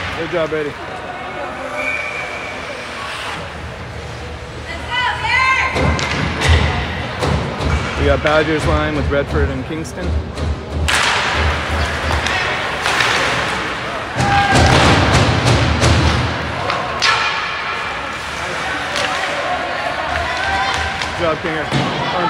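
A crowd of spectators talks and cheers nearby.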